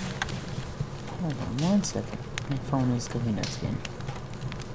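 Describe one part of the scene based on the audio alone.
A woman speaks briefly and casually into a close microphone.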